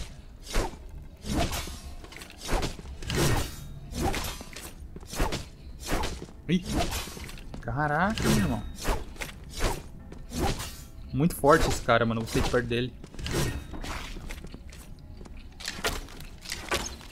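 Swords clash and slash in quick, repeated blows.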